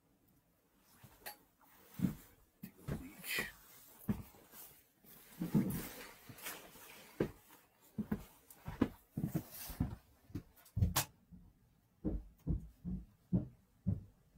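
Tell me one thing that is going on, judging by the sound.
A person moves about nearby, with thumps and knocks.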